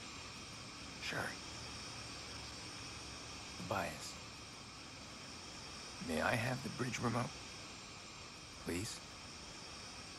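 A young man speaks calmly in a low voice.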